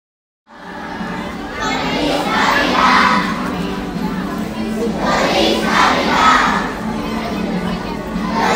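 A choir of young children sings loudly together in a large echoing hall.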